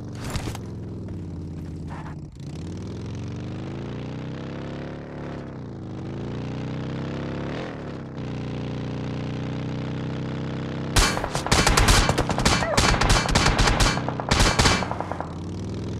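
A large truck engine roars and revs up and down.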